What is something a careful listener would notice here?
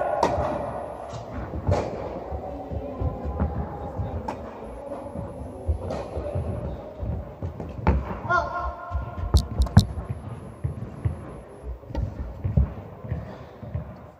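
Tennis balls bounce on a court.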